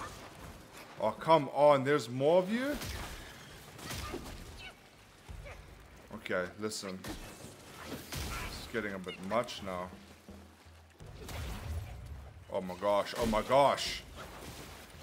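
A young man talks with animation into a nearby microphone.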